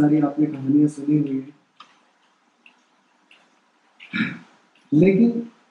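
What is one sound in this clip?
A man reads out aloud into a microphone, heard through a loudspeaker in an echoing room.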